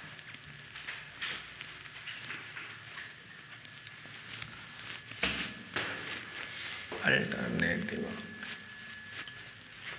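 A cloth rubs on a whiteboard, wiping it.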